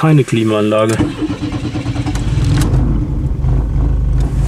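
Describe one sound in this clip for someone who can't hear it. A car engine rumbles and revs up inside the car.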